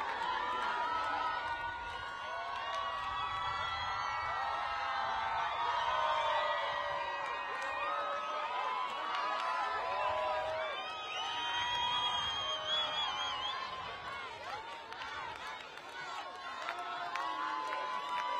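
A large crowd outdoors cheers and sings loudly.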